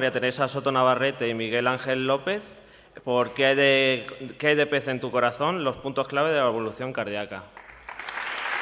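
A man speaks with animation through a microphone in a large hall.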